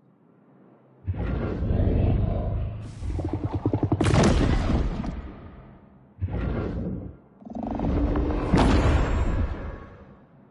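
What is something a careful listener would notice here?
Deep booming game sound effects swell and fade.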